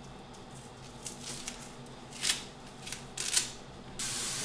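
Celery stalks snap and crackle.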